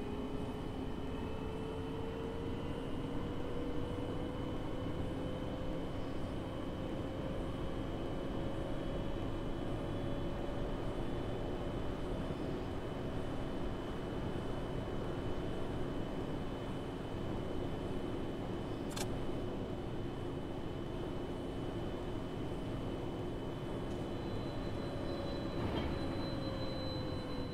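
A bus engine hums steadily, rising slightly in pitch as the bus speeds up.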